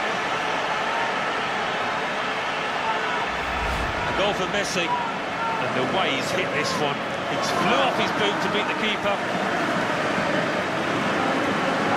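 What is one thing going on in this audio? A large stadium crowd roars and murmurs.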